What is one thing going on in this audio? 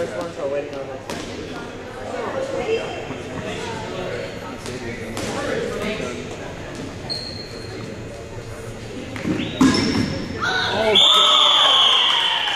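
Players' voices chatter and shout, echoing in a large hall.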